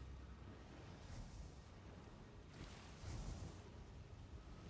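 A magic spell crackles and bursts with a bright whoosh.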